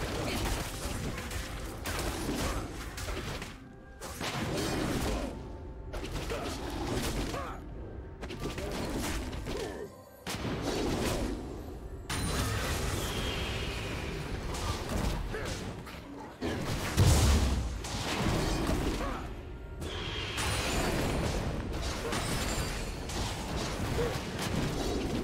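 Game spells whoosh and crash during a fight.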